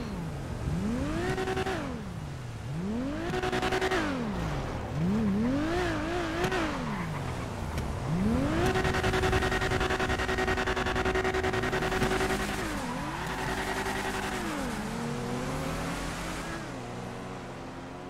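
A siren wails up and down, then holds a long steady note before fading.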